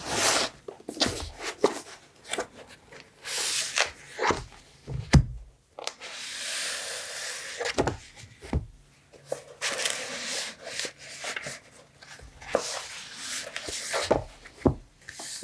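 Old paper sheets rustle and crinkle as they are handled up close.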